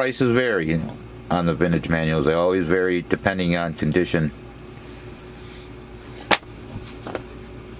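Paper rustles as a booklet is handled nearby.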